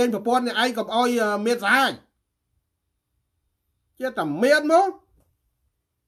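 A middle-aged man speaks loudly and with animation over an online call, in short bursts.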